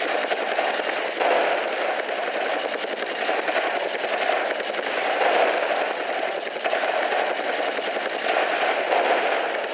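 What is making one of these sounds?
Explosions boom in short bursts.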